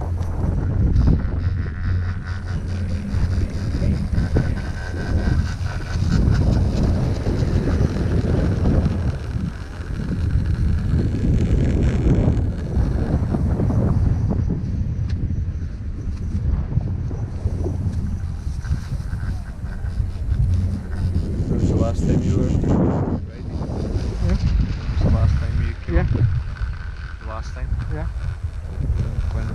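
Wind rushes and buffets loudly against the microphone outdoors.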